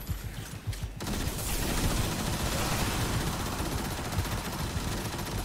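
Crackling electric blasts hit a large creature.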